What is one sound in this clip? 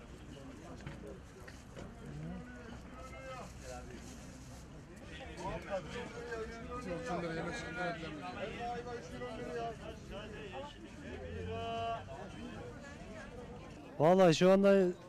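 A crowd of men and women chatters in the background.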